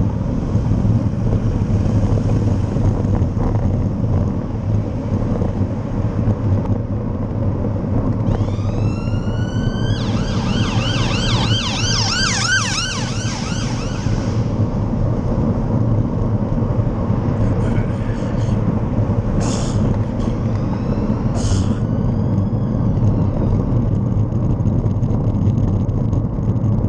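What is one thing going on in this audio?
Wind and road noise rumble steadily.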